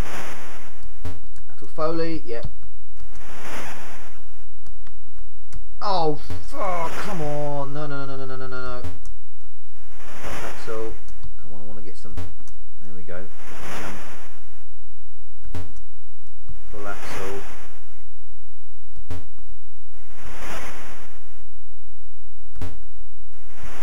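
Electronic hissing bursts from a video game repeat at a steady beat.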